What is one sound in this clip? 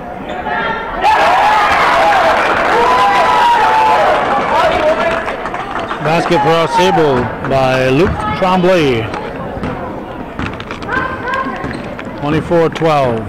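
Spectators cheer and shout in a large echoing gym.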